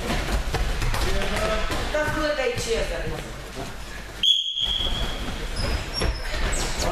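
Bare feet thud and patter on gym mats as people run.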